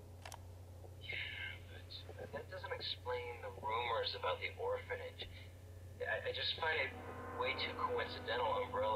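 A young man speaks calmly over a radio.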